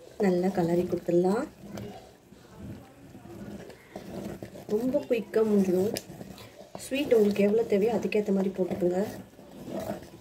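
A wooden spoon stirs and scrapes in a pot.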